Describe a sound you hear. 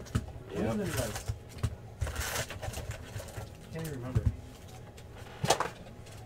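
Cardboard scrapes and thumps as a box is handled.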